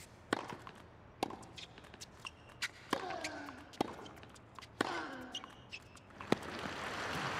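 A tennis ball is struck sharply back and forth by rackets.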